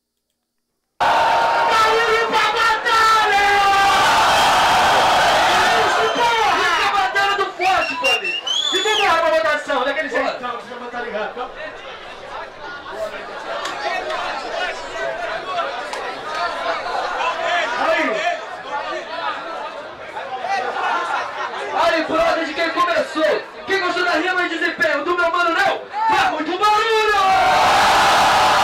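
Young men rap into microphones over a loudspeaker.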